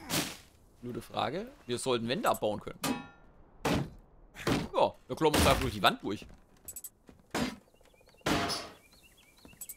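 Weapon blows land with dull thuds.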